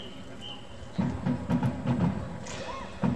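A marching band's drums pound loudly.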